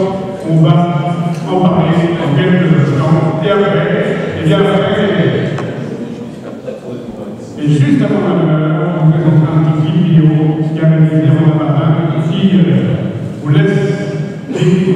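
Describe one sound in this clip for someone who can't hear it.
A man speaks into a microphone over loudspeakers in a large echoing hall.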